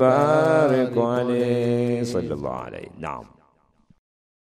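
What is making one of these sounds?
An older man speaks in a slow, drawn-out voice close by.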